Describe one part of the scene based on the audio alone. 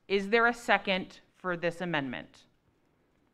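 A woman speaks into a microphone in short bursts.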